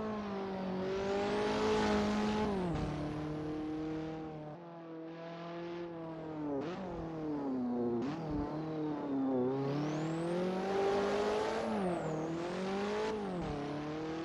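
A racing car engine roars, revving up and down through the gears.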